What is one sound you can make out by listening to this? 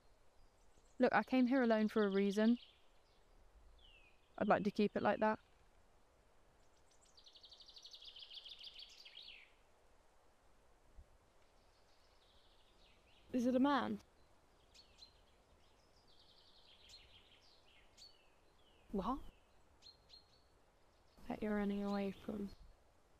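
A young woman sings in short, loud phrases close by.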